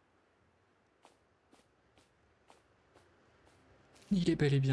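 Light footsteps patter quickly over grass.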